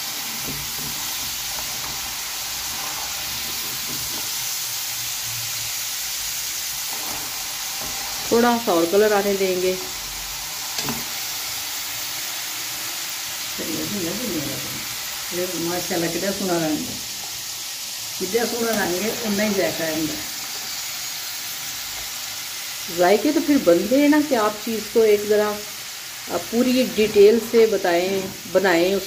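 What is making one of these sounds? Oil sizzles steadily as potatoes fry in a pan.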